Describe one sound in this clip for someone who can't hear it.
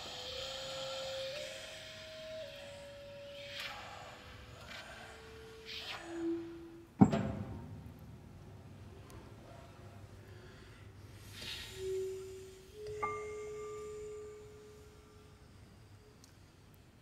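A man sings softly into a microphone.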